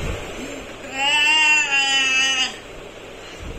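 A boy cries out in distress close by.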